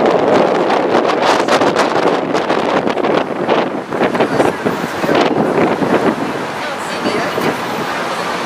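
A crowd of people talks and calls out loudly close by.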